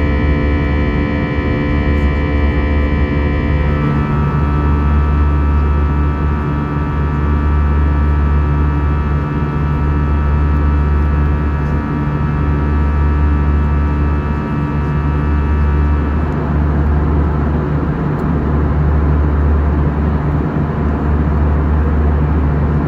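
A jet engine roars steadily with a low, constant hum.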